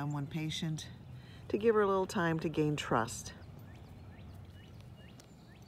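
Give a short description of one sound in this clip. A small dog sniffs at dry grass.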